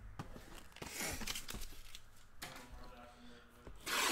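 Cardboard packaging rustles and scrapes in a man's hands.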